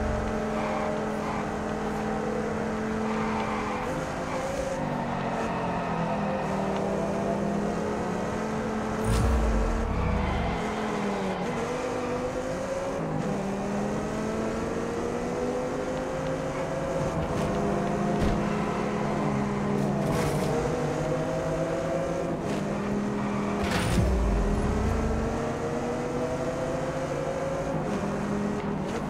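A sports car engine roars loudly, its pitch rising and dropping as it speeds up and shifts gears.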